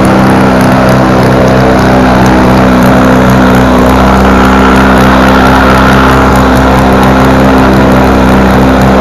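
A spinning propeller whooshes and buzzes.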